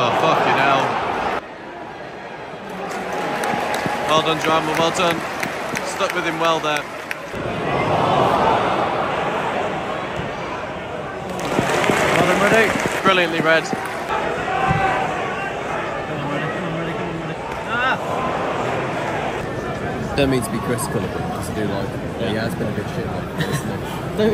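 A large stadium crowd sings and chants together, echoing loudly.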